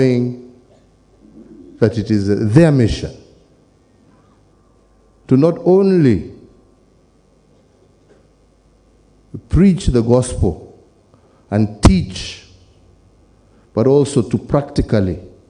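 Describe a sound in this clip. A middle-aged man speaks slowly and deliberately into a microphone, with pauses, his voice carried over loudspeakers.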